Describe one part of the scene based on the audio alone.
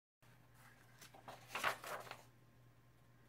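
Paper pages rustle as a sketchbook page is turned.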